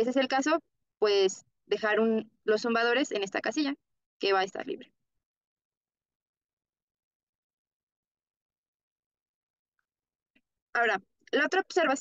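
A young woman speaks calmly and clearly into a microphone, pausing now and then.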